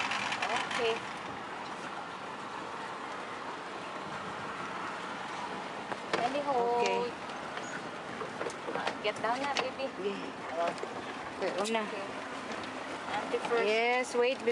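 A pedal boat's paddles churn the water.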